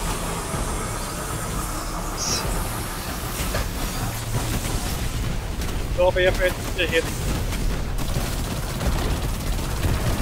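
Electric crackling zaps.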